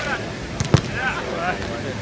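A volleyball is struck with a thud.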